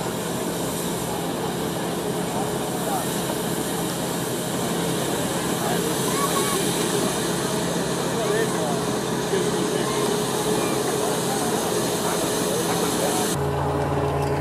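A steam engine runs with a steady hiss and chug.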